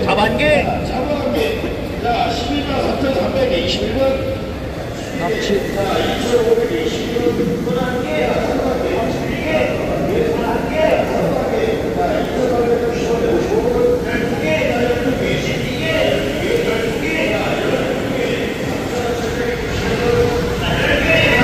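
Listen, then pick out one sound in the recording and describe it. Many men talk loudly all around in a large echoing hall.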